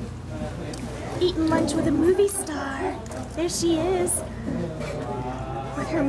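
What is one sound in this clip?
A young girl talks close by in a high voice.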